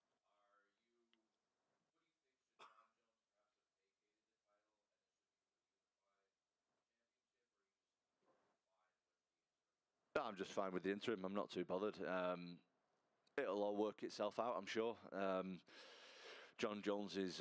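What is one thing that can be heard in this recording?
A young man speaks calmly into a microphone over a loudspeaker.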